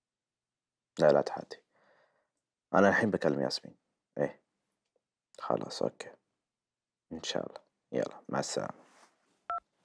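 A man speaks quietly into a phone, close by.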